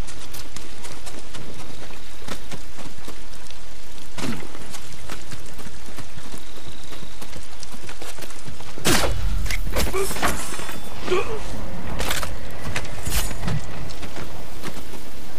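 Rain pours down steadily outdoors.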